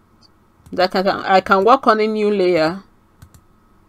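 A woman speaks calmly and briefly into a close microphone.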